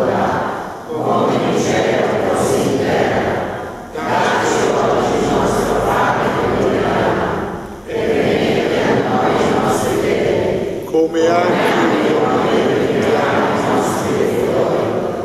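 A woman sings into a microphone, heard through loudspeakers in an echoing room.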